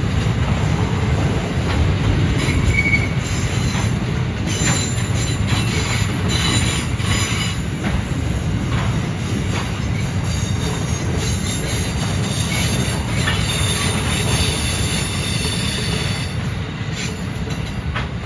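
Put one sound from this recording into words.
Train wheels clatter and click over rail joints.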